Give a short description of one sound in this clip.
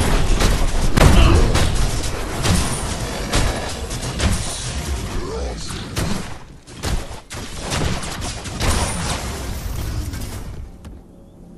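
Heavy blades clash and strike repeatedly.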